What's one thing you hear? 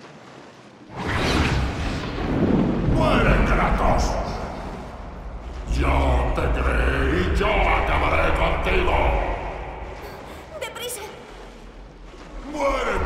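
Water splashes and churns as a swimmer pushes through it.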